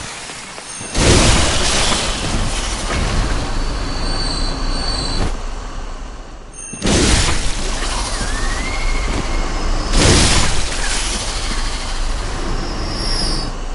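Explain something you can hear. Blades slash and strike creatures with wet thuds.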